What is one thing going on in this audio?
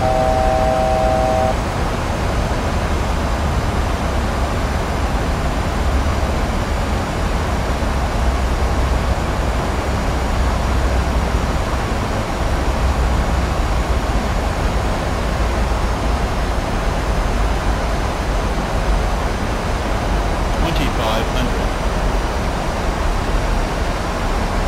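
A jet airliner's engines and rushing air roar steadily, heard from the cockpit.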